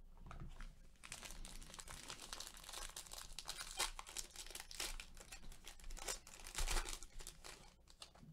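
A foil trading card pack crinkles as it is torn open.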